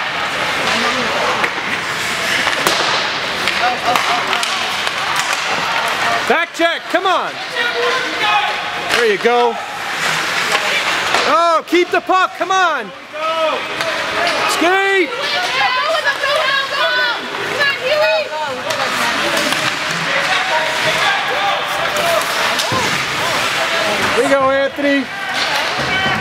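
Ice hockey skates scrape and carve across ice.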